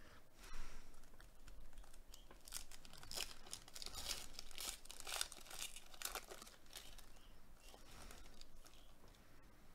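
Foil wrapping crinkles and tears as a pack is ripped open.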